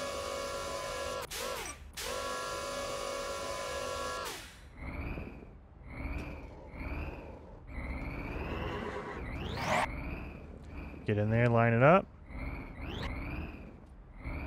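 A robot's motors whir as its arms move.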